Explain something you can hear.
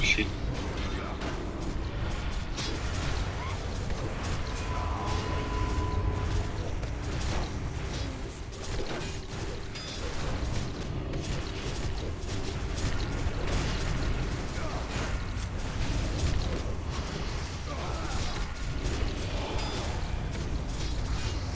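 Magic spells whoosh and crackle in a busy fantasy battle.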